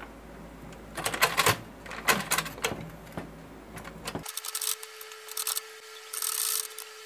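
A sewing machine rattles in short bursts.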